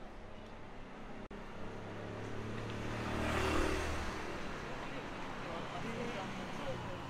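A quiet city street hums with distant traffic outdoors.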